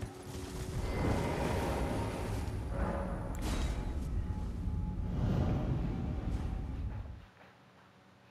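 A swirling portal roars with a rushing whoosh.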